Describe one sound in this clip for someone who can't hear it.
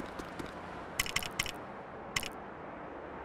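Short electronic blips sound as menu choices switch.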